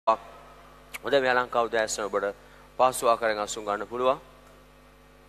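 A man speaks with animation through a microphone in a large echoing hall.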